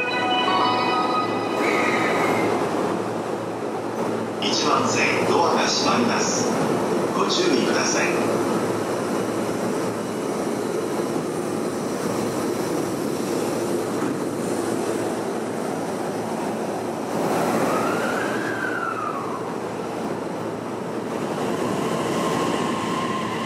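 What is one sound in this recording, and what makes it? A stopped train hums steadily nearby.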